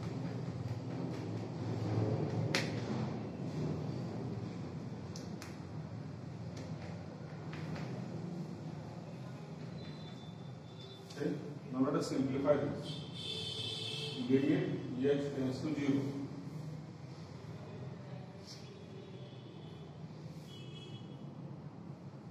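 A man speaks in a lecturing tone in a room with some echo.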